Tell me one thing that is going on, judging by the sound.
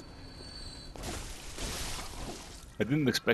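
A blade slashes and strikes flesh.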